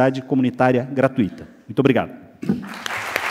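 A man speaks loudly through a microphone in a large hall.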